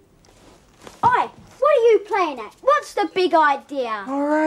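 A young man speaks loudly and with animation nearby.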